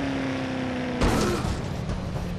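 A car bumps into another car with a heavy thud.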